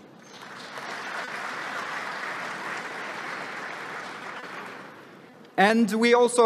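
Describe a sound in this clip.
An audience applauds in a large hall, then the applause fades.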